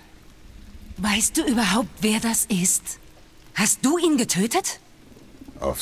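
A young woman speaks tensely and close by.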